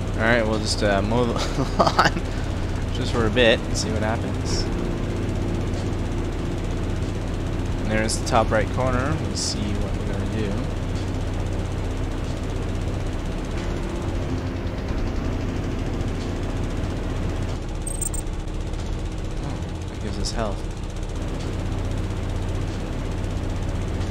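A mower engine hums steadily.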